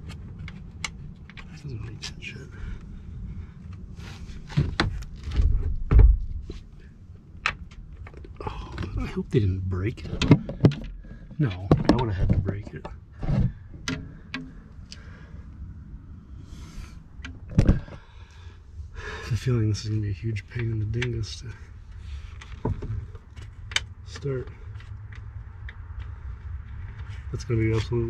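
Plastic trim panels click and rattle as hands handle them.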